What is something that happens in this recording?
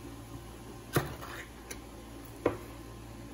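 A metal can lid tears and scrapes as it is peeled back.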